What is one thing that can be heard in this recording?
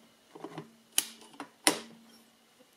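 Metal parts of a machine click and clack as a hand moves them.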